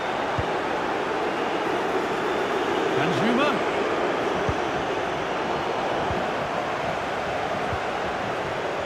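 A football is kicked with dull thumps now and then.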